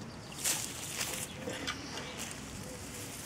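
A hand scrapes and pats through soil.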